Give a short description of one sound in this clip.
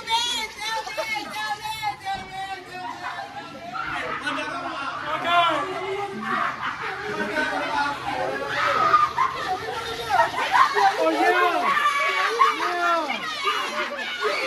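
Young men talk and shout excitedly nearby.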